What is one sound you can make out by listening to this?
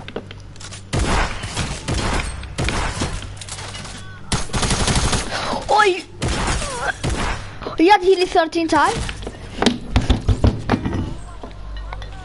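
Gunshots and building thuds crack loudly in rapid bursts.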